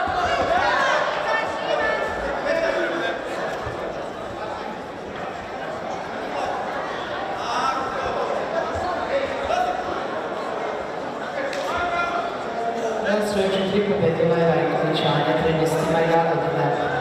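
A large crowd chatters and cheers in a big echoing hall.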